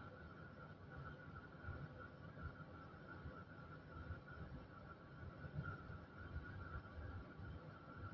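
A low rumble comes from the tram's machinery.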